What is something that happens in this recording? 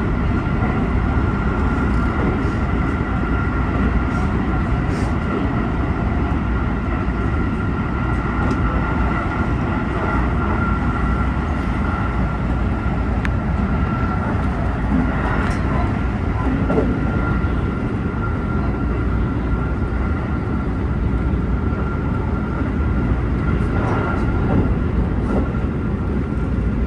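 A train's motor whines with a steady high hum.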